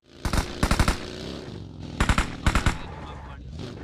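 A buggy engine revs and rumbles as it drives.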